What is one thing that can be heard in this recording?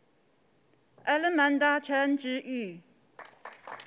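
A woman reads out a name through a microphone in a large hall.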